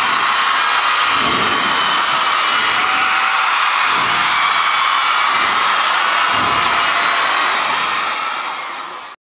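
A young man sings through a microphone.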